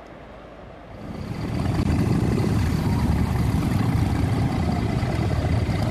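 Motorcycle engines idle and rumble nearby.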